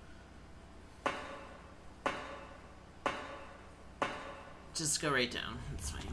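Footsteps clank on the rungs of a metal ladder.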